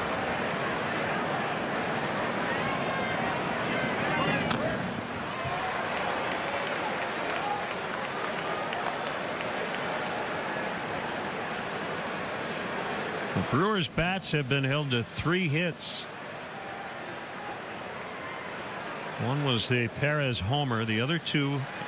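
A crowd murmurs steadily outdoors.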